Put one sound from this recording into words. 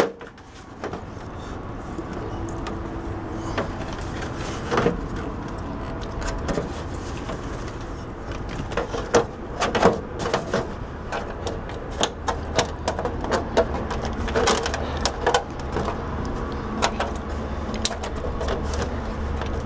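A plastic casing clicks and knocks as hands handle it.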